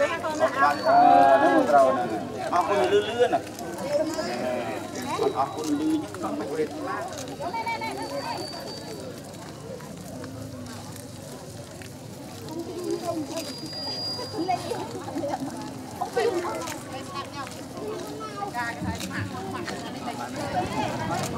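A crowd of children and adults chatters in the background outdoors.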